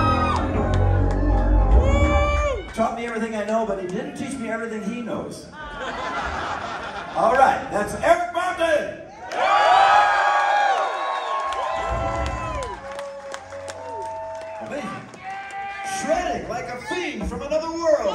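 A band plays loud rock music with electric guitars and drums.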